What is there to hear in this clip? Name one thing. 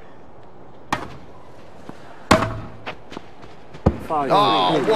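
A tennis ball is struck sharply with a racket, back and forth.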